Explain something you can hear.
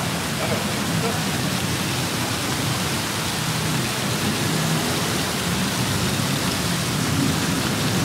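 Water trickles down a wall fountain.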